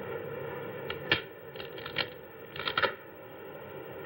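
Wooden frames knock and scrape.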